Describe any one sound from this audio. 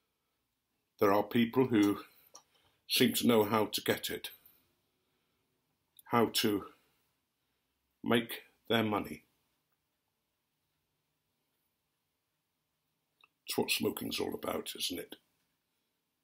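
An elderly man speaks calmly and close by, in short bursts.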